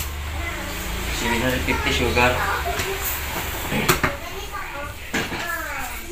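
Sugar pours into a metal pot.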